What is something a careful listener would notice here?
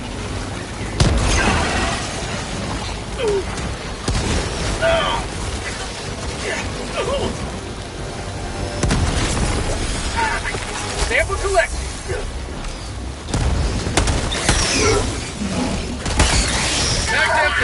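Explosions boom in bursts.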